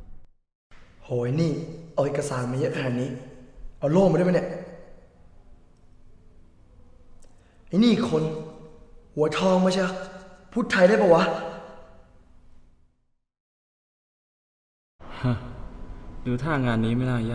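A young man speaks calmly and close by, with pauses.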